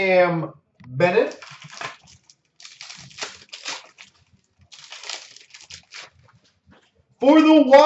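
Plastic card wrappers rustle and crinkle as they are torn open.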